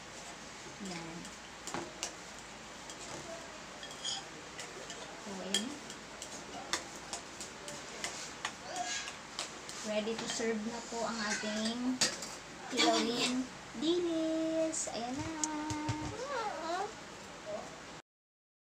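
A metal spoon clinks and scrapes against a glass bowl.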